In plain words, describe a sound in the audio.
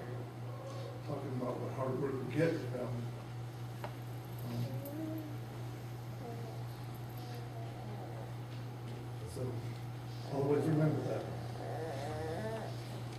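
A man speaks calmly through a microphone and loudspeakers in a hushed room.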